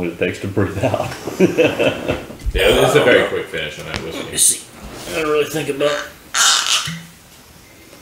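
Several men talk and laugh together nearby.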